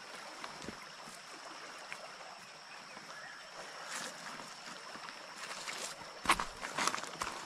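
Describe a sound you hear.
A river rushes steadily with a soft wash of flowing water.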